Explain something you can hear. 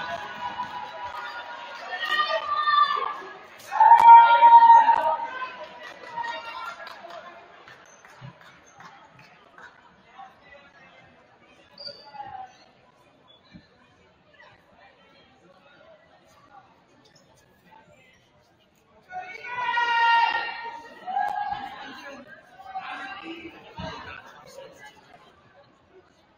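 Young players chant and shout together in a large echoing hall.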